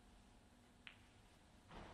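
A snooker ball is set down on the cloth of a table with a soft click.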